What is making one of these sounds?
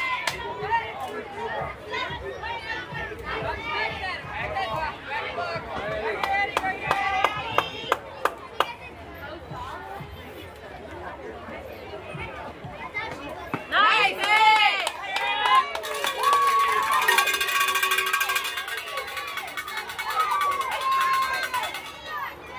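Young girls shout and cheer at a distance.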